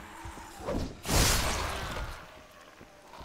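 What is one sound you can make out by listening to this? A blade hacks into flesh with a wet, heavy splatter.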